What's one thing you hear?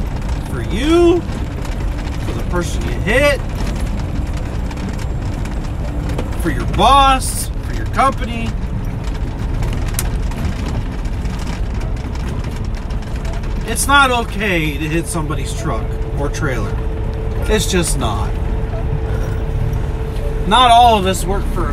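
A vehicle's engine hums steadily with a low road rumble.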